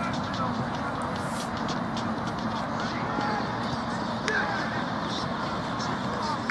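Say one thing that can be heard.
Men shout and call out to each other across an open outdoor pitch.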